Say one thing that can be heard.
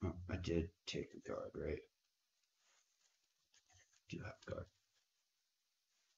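Playing cards are shuffled and tapped together by hand.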